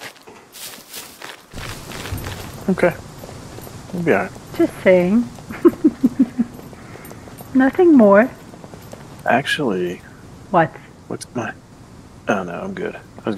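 Footsteps crunch on gravel and then tap on concrete.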